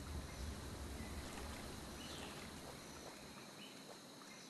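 Water splashes and sloshes as an animal wades through it.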